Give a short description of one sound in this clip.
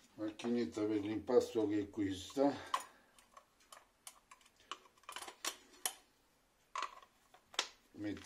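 Metal beaters click and clatter as they are fitted into a hand mixer.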